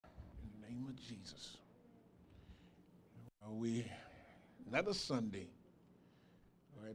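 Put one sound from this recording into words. A man preaches with animation into a microphone, his voice carried over loudspeakers in a large room.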